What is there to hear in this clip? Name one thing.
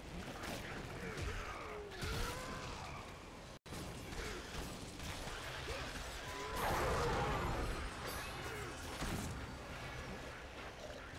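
A large monster shrieks and growls.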